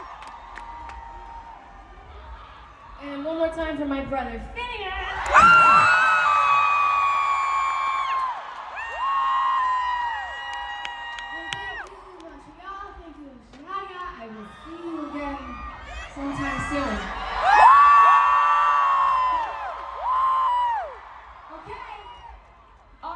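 A young woman sings into a microphone, heard through loud speakers.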